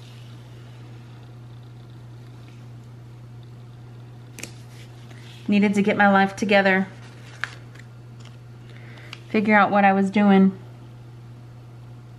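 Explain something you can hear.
A sticker peels softly off its backing and is pressed onto paper.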